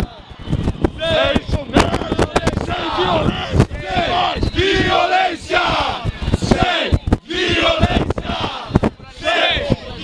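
A crowd of young men chants and shouts loudly close by.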